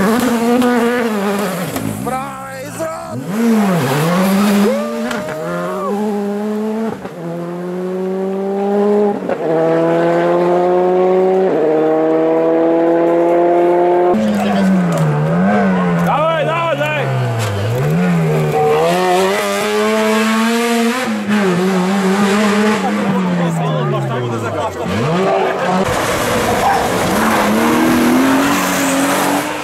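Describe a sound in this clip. A rally car engine revs hard and roars past, shifting gears.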